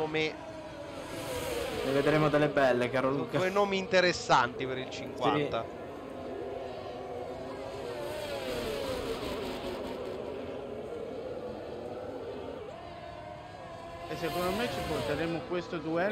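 A racing car engine whines loudly, rising and falling in pitch as it shifts gears.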